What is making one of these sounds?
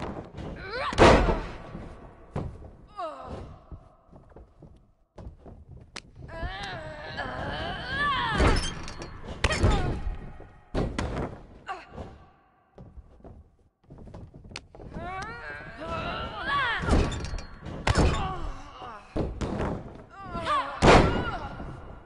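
Bodies slam down hard onto a ring mat with heavy thuds.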